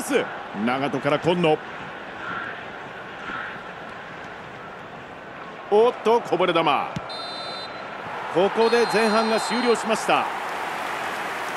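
A stadium crowd murmurs.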